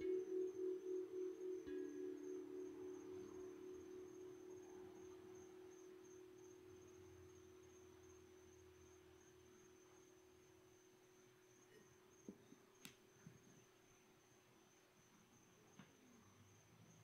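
A singing bowl hums with a gentle wavering tone and slowly fades away.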